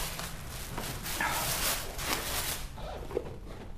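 Paper pages rustle as a book is leafed through.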